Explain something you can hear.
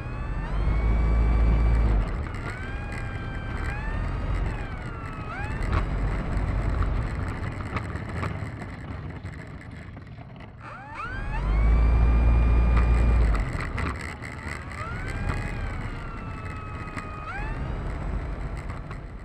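A small electric motor whines loudly, its pitch rising and falling as a propeller speeds up and slows down.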